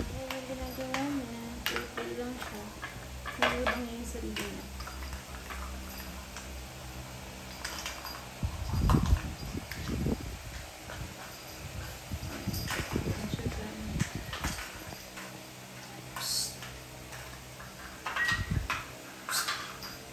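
A plastic toy knocks and clatters on a hard floor.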